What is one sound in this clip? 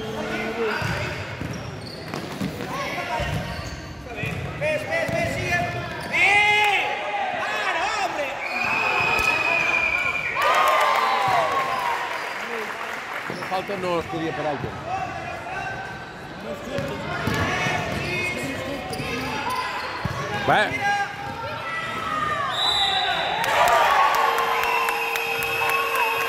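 Children shout and call out across a large echoing hall.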